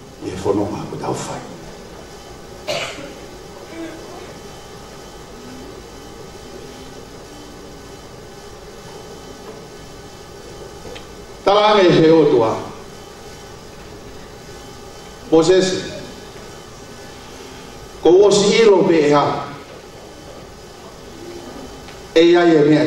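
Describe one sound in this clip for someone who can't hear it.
A man speaks with feeling into a microphone, in short loud bursts with pauses between.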